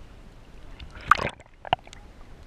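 Water splashes loudly as something breaks the surface.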